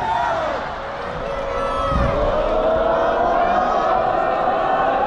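A large stadium crowd sings and chants loudly, echoing across the open stands.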